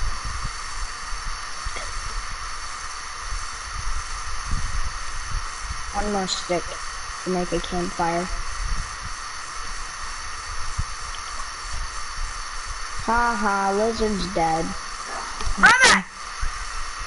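A torch flame crackles and roars steadily.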